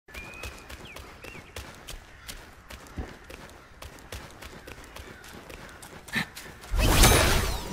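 Footsteps patter quickly over stone.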